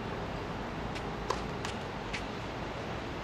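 A tennis ball bounces a few times on a hard court nearby.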